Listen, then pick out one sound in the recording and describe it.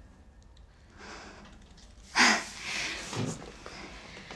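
A younger woman speaks quietly and calmly.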